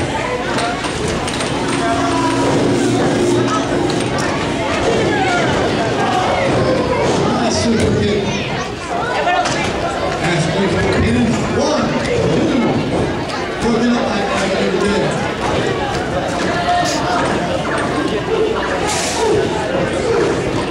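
Bodies thud heavily onto a wrestling ring's mat.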